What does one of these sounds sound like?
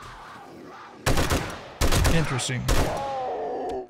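A rifle fires loud gunshots.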